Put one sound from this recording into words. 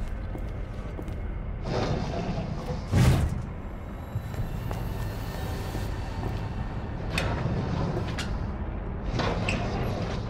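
A metal drawer slides open with a scrape.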